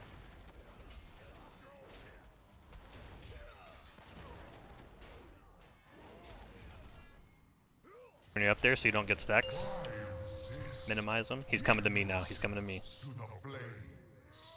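Magic spells crackle and burst amid a noisy battle.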